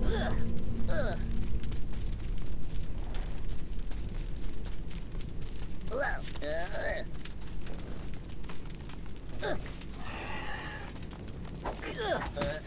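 Light footsteps patter quickly on a hard surface.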